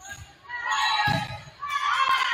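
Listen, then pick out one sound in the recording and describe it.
A volleyball is struck with a hard smack.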